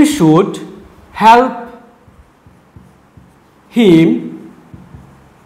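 A man speaks in short phrases, close by.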